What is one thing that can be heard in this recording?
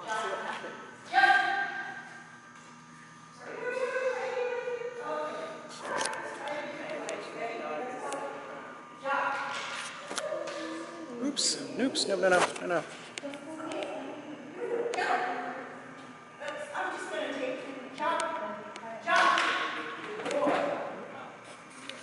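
A woman calls out commands with animation in a large echoing hall.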